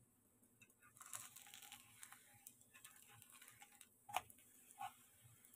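Batter sizzles in a hot pan.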